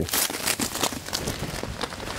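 A dog runs through leafy plants, rustling them.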